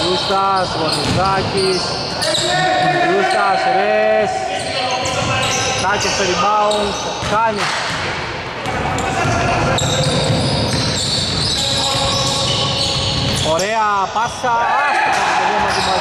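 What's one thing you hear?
Sneakers squeak sharply on a hard court in an echoing gym.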